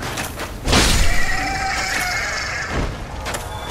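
A creature shrieks.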